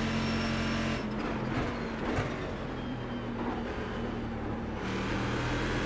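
A racing car engine drops in pitch as the car slows for a corner.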